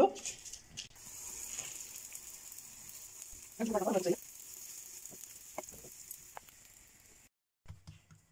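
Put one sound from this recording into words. Food sizzles as it fries in oil in a pan.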